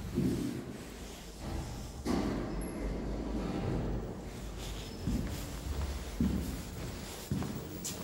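Elevator doors slide along their track.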